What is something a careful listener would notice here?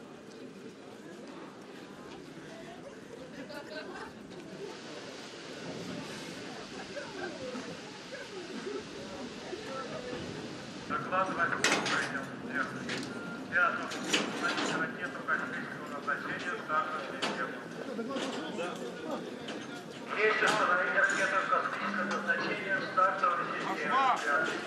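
A train rumbles and creaks slowly along a track.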